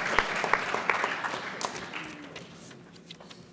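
An audience applauds in a hall and the clapping fades away.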